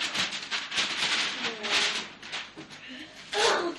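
Wrapping paper crinkles and rustles close by.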